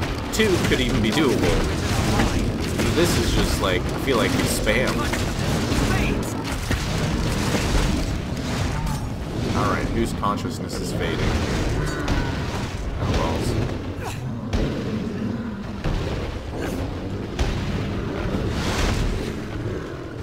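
A giant monster growls and roars.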